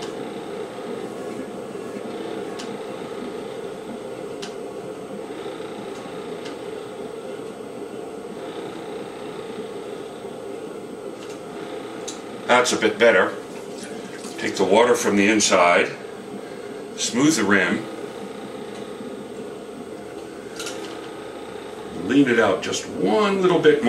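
A pottery wheel hums as it spins.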